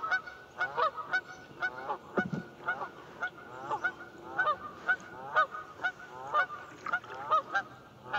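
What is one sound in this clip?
A flock of Canada geese honks across open water.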